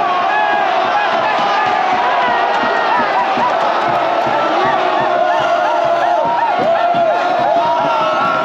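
A young man shouts with joy close by.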